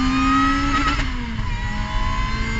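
A race car engine dips in pitch as it shifts up a gear.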